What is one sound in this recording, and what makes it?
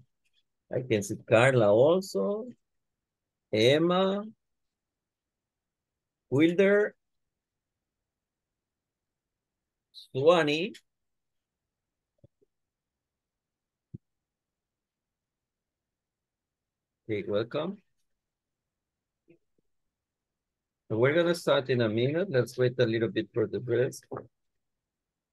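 A man speaks calmly in short phrases over an online call, with pauses between them.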